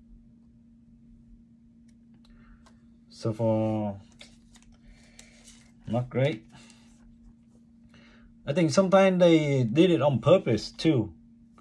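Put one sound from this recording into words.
Trading cards are laid down softly on a mat, one after another.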